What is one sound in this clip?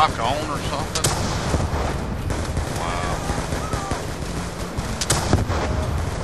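A rifle fires single sharp shots.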